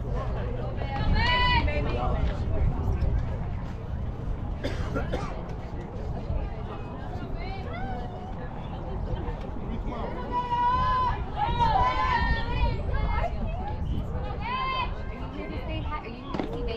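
Young women shout and cheer from a distance outdoors.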